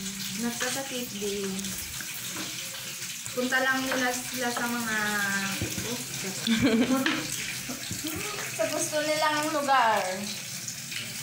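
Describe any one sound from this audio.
A young woman talks with animation close by.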